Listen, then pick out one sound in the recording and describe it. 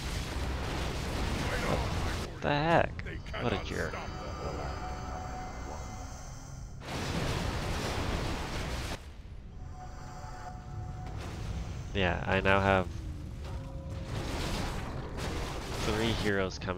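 Swords clash and clang in a game battle.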